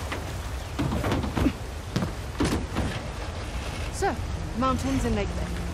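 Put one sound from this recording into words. Water splashes and rushes around tyres.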